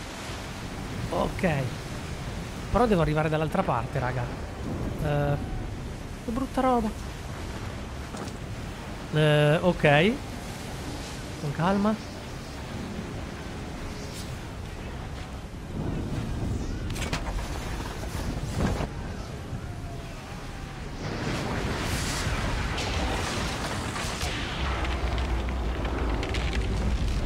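Strong wind howls over a rough, stormy sea.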